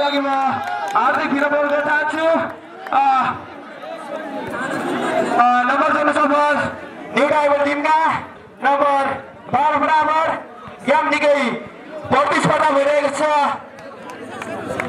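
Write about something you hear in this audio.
A man commentates with animation over a loudspeaker, echoing outdoors.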